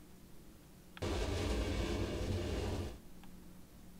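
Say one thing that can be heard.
A metal drawer slides out.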